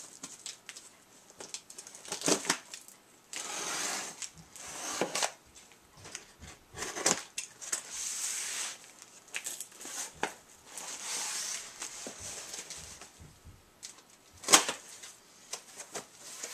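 A knife slits tape on a cardboard box.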